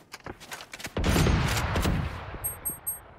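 A rifle is drawn with a metallic rattle.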